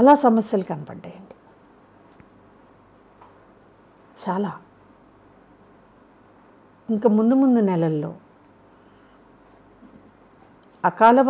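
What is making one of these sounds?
A middle-aged woman speaks calmly and close to a microphone, in short phrases with pauses.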